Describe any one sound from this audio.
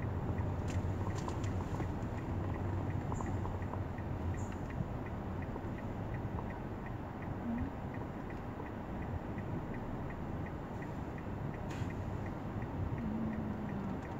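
A large truck's engine rumbles low just ahead.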